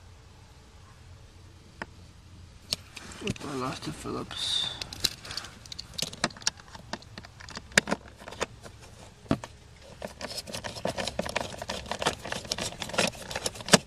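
A socket wrench clicks and clatters against metal bolts.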